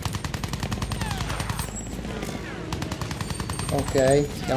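Machine guns rattle in rapid bursts.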